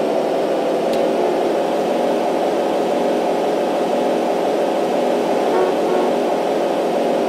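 A car engine hums steadily as it drives along a road.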